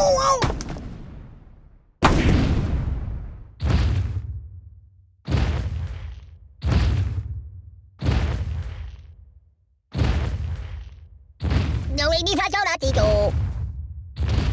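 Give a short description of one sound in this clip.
Heavy booming thuds strike again and again, each dying away slowly.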